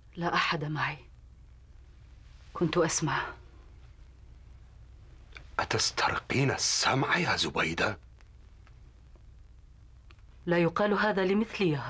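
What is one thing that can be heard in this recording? A middle-aged woman speaks with emotion close by.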